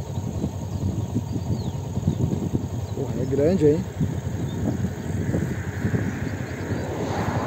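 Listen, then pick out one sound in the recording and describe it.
Wind buffets and rumbles steadily outdoors.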